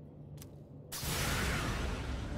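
A loud rushing burst of noise sweeps in.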